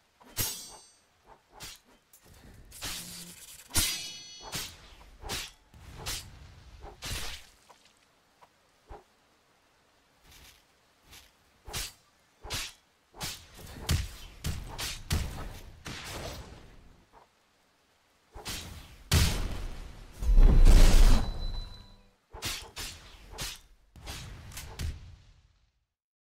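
Magic blasts crackle and boom.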